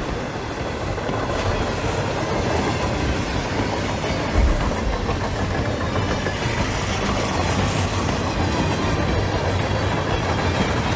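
Strong wind blows steadily outdoors in a storm.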